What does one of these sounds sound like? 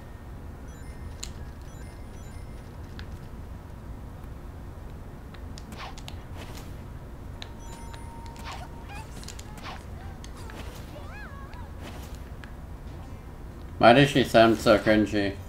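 Video game sound effects chime and whoosh.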